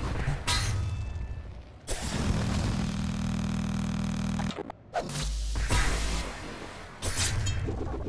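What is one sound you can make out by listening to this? Heavy metal blades clash and clang.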